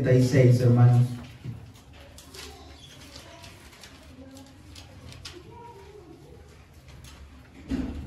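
Pages of a large book rustle as they turn.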